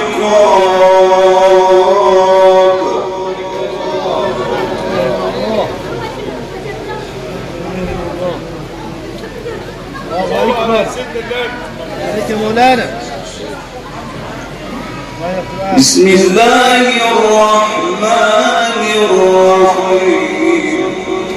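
A man chants in a long, melodic, drawn-out voice through a microphone.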